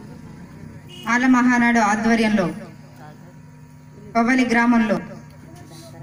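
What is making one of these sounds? A woman speaks loudly into a microphone over a loudspeaker outdoors, in two drawn-out phrases.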